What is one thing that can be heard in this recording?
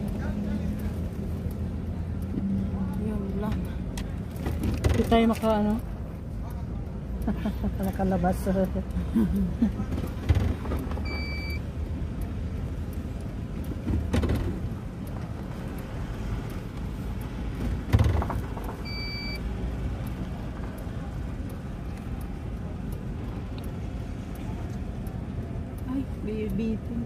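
A car engine hums low and steady as the car rolls slowly.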